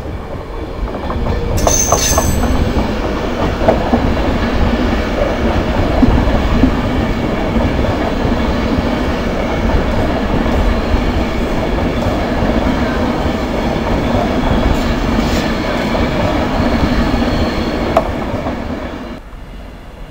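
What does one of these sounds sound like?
A train rolls past close by with a loud, steady rumble.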